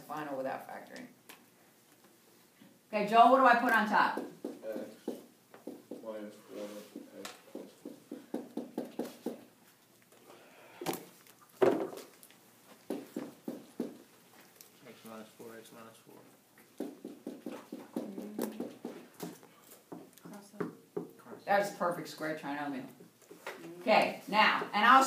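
An older woman speaks calmly, explaining as she teaches, close by.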